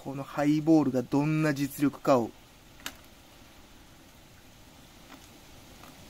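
A drink pours over ice into a glass.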